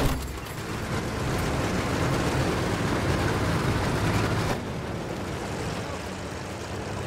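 An armored vehicle's engine rumbles.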